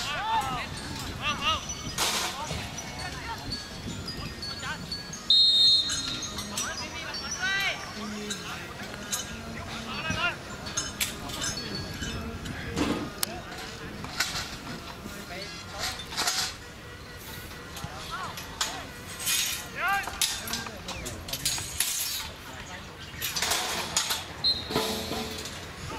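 Young men shout to each other from across an open field outdoors.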